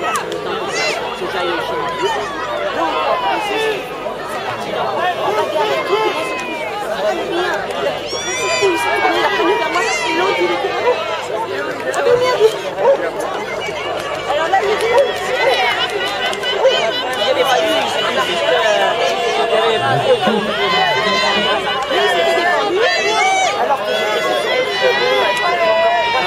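A crowd of men and women chatters outdoors, a little way off.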